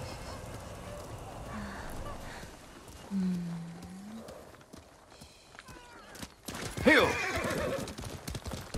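Horse hooves clop slowly on a dirt path.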